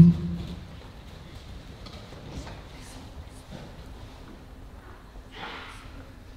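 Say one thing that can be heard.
Children's feet thud softly on padded mats.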